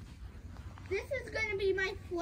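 A toddler babbles in a high voice.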